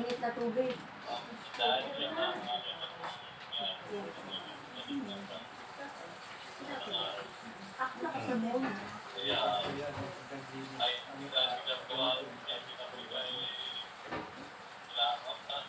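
Cutlery and dishes clink on a table.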